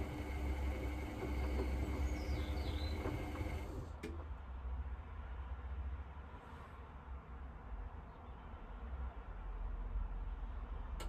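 Water and suds slosh inside a washing machine.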